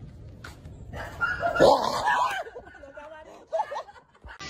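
A man yelps in fright outdoors.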